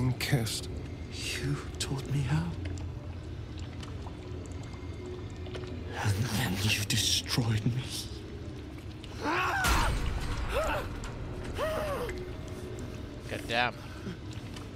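A man speaks slowly in a hoarse, bitter voice.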